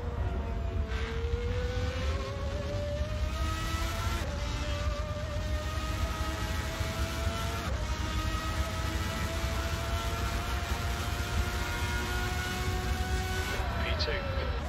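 A racing car engine whines, rising in pitch through each gear and dropping sharply at each gear change.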